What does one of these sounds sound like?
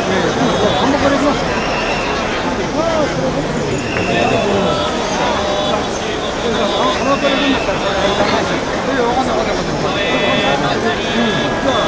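Men and women call out and talk over each other in the crowd.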